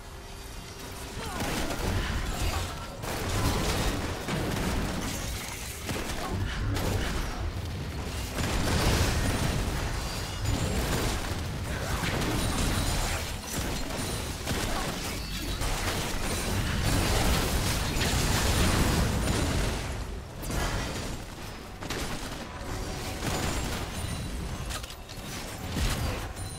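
Fantasy battle sound effects of spells and sword strikes clash and burst.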